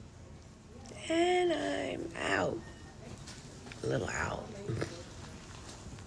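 A woman talks slowly and wearily close to a phone microphone.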